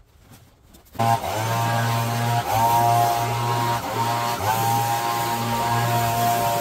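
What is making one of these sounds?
A leaf blower roars loudly.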